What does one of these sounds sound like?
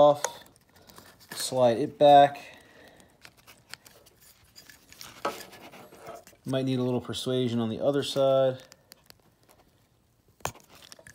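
A plastic connector clicks and rattles as it is handled.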